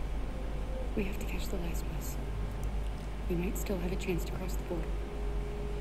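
A young woman speaks softly and urgently.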